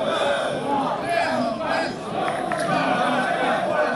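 A small crowd of spectators chatters and murmurs nearby.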